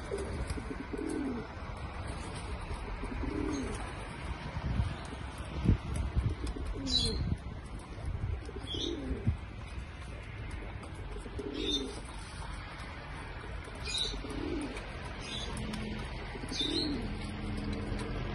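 Pigeons coo in low, rolling calls again and again.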